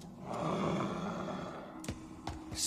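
A large beast growls low and menacingly.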